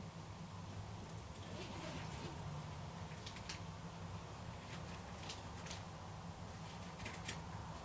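Footsteps scuff on paving stones.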